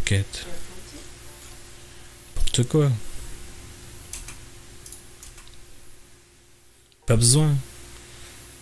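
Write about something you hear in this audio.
A young man speaks briefly into a close microphone in short bursts.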